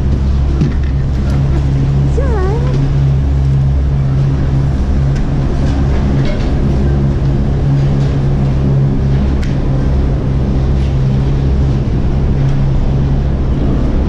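Gondola machinery hums and rumbles steadily.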